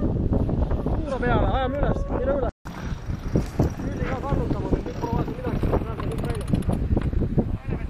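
A man talks loudly over the wind.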